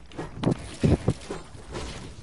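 A pickaxe strikes with sharp thuds.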